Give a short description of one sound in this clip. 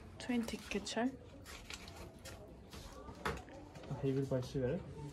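Paper money rustles in a man's hands.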